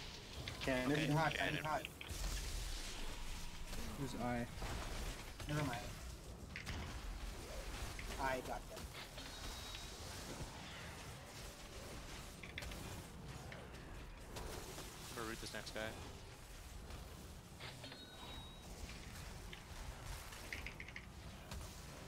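Video game spell effects whoosh and crackle throughout.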